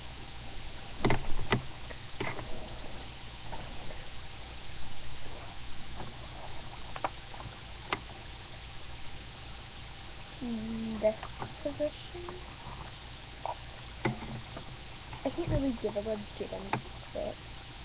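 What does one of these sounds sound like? Fumbling knocks and bumps sound against the microphone.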